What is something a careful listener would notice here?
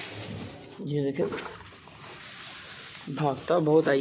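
Dry straw rustles and crackles.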